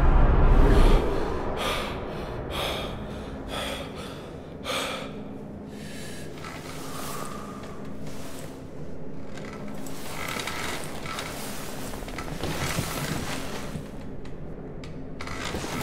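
Bedding rustles and shuffles close by.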